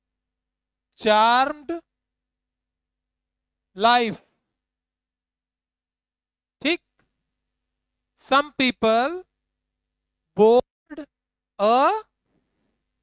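A young man speaks loudly and clearly in short bursts with long pauses.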